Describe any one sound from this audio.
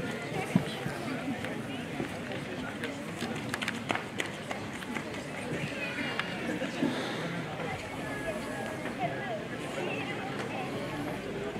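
A small string band plays music through loudspeakers.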